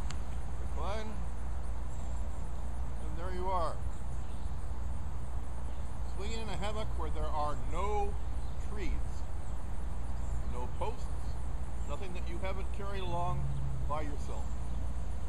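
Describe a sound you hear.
An older man speaks calmly and casually, nearby outdoors.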